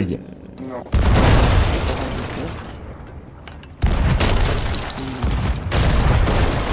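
Cannons fire with loud booms.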